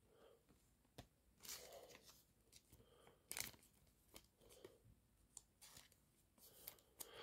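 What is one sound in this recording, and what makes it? Stiff trading cards slide and rustle against each other as they are shuffled.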